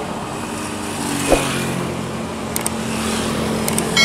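A motorbike engine hums as it rides by.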